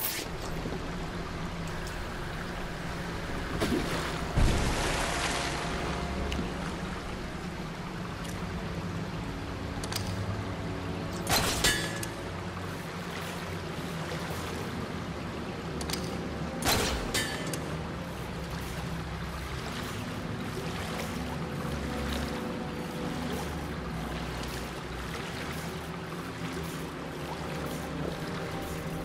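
Water rushes steadily through an echoing tunnel.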